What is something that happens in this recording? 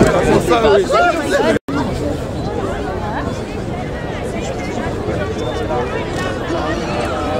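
A crowd of people chatter loudly close by.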